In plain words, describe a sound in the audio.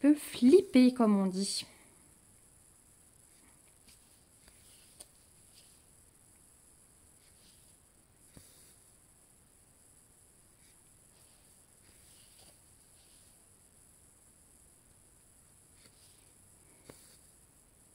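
Thread softly rasps as it is pulled through stiff fabric.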